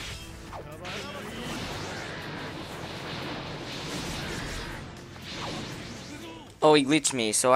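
Magic blasts roar and whoosh.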